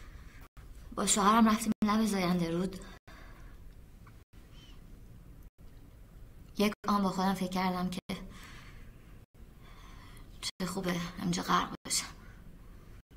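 A young woman speaks haltingly and with emotion, close by.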